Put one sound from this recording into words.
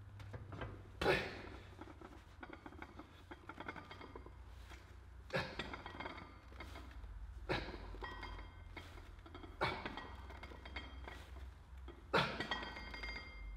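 A man grunts and exhales sharply with each heavy lift.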